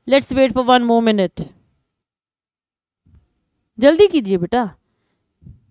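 A young woman speaks calmly and clearly into a close microphone, in short phrases with pauses.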